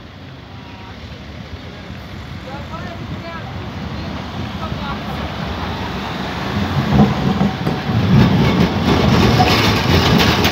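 A tram approaches and rumbles past close by, growing louder.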